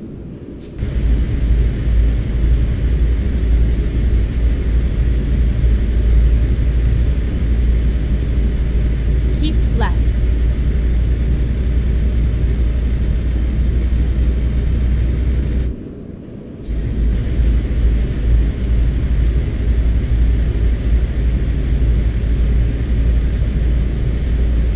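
A truck engine rumbles steadily while driving along a highway.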